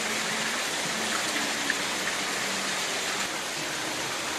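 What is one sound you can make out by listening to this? Water sprays down in a fine, steady hiss.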